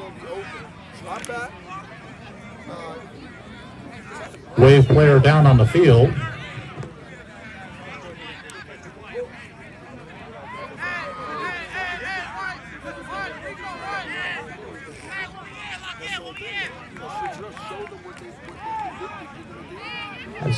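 A crowd of players and spectators talks and calls out across an open field outdoors.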